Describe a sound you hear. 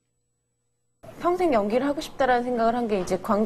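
A young woman speaks emotionally.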